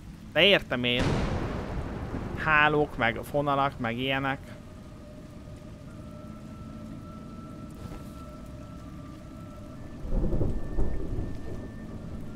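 Heavy rain pours steadily.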